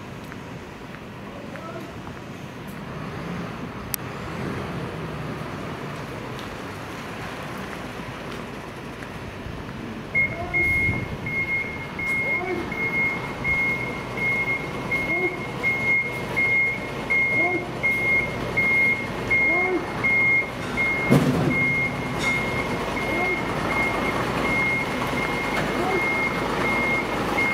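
A truck engine rumbles nearby.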